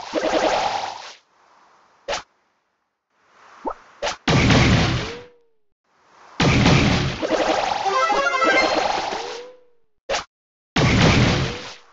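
Game weapons fire in bursts with sharp whooshing blasts.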